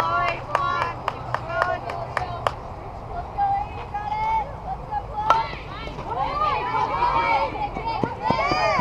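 Young women shout and cheer across an open field.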